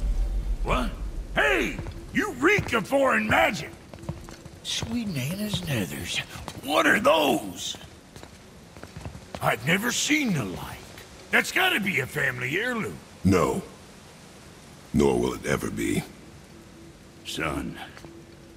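A man speaks in a deep, calm voice.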